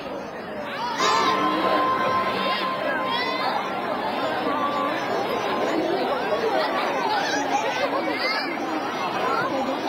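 A crowd of adults chatter outdoors.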